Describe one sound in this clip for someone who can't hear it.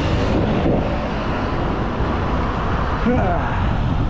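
A car engine hums as it drives past.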